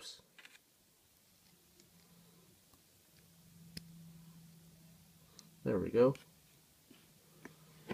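Small plastic pieces click softly together.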